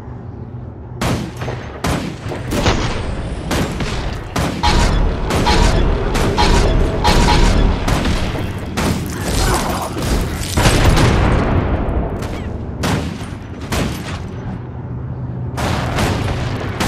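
Weapons clash and magic blasts burst in quick, repeated hits.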